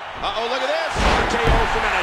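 A heavy body slams onto a wrestling mat with a thud.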